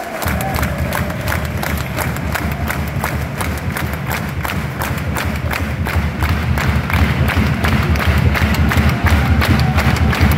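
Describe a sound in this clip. A stadium crowd roars and chants.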